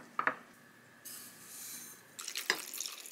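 Sugar pours with a soft hissing patter into a bowl.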